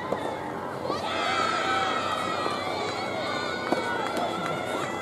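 Young women call out across an outdoor court.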